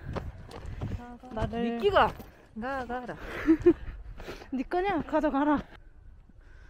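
A young woman speaks brightly and excitedly close to the microphone.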